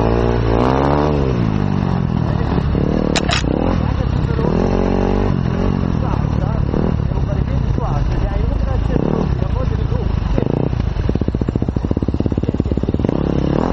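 A motorbike engine revs up and down loudly up close.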